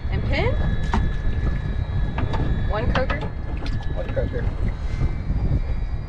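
Water splashes and sloshes in a tank as a fish is handled.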